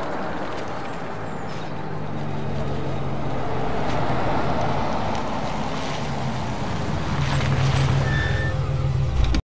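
A car engine hums as the car drives slowly along the street.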